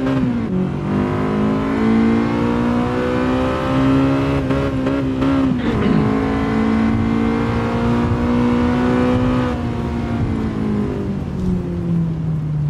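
A car engine roars at high revs and drops in pitch with each gear change.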